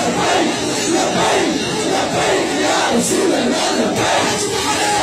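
A large crowd of men chants loudly and with excitement, close by.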